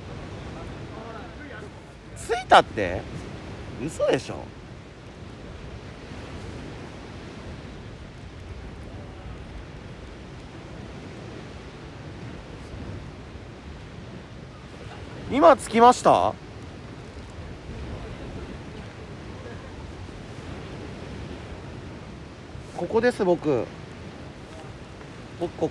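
A small wood fire crackles.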